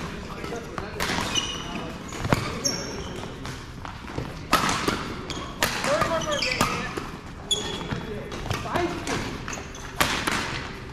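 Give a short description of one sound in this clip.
Badminton rackets smack shuttlecocks again and again in a large echoing hall.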